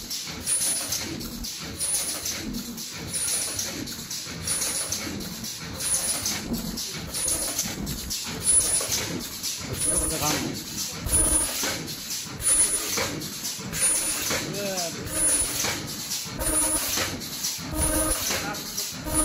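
Machines clatter and thump with a fast, steady rhythm.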